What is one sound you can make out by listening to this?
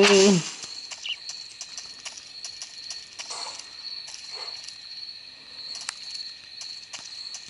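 Footsteps tread steadily through a small tinny speaker.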